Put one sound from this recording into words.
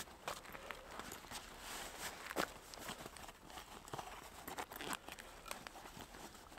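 Small things click and rustle in a pair of hands close by.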